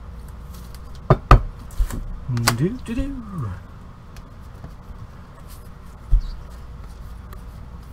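Trading cards rustle and tap as they are shuffled.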